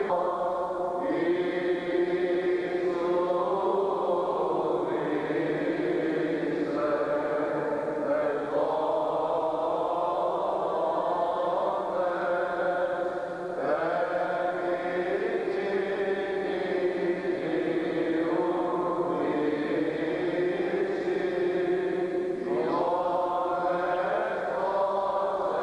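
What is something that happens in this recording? A group of men chant together in long, steady sung phrases.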